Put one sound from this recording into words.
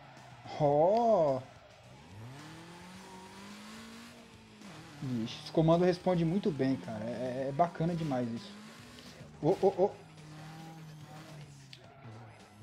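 A car engine revs up and down as it races along.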